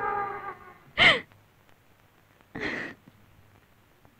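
A woman sobs softly.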